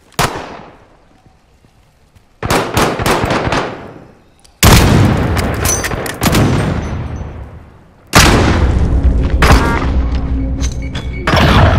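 A sniper rifle fires loud sharp shots that echo and fade.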